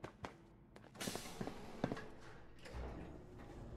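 An elevator door slides shut with a hiss.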